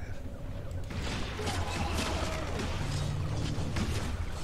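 A shark bites and thrashes in the water.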